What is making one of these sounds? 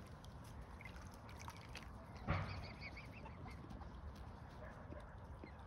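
Water drips and laps softly as a swan dabbles at the water's edge.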